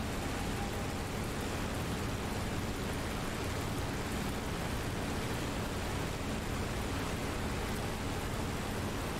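A propeller plane's engine drones steadily with a low roar.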